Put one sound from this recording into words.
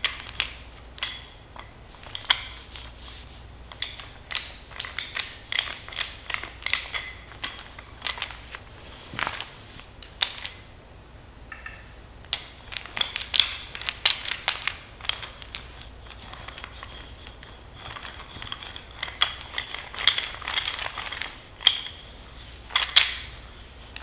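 A wooden roller massager rubs and clicks against skin and fabric.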